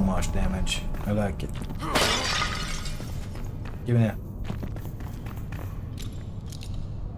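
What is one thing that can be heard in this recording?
Footsteps fall on a stone floor.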